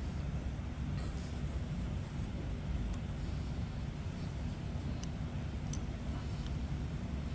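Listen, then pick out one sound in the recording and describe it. Small metal parts click and tap against a metal housing.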